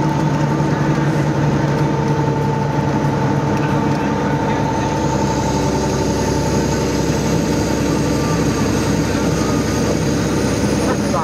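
A car engine hums steadily while driving along a highway.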